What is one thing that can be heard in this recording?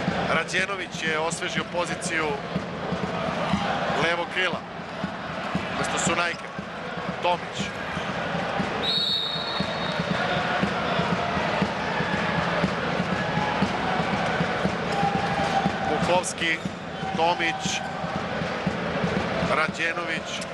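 A large crowd cheers and chants throughout, echoing in a big indoor hall.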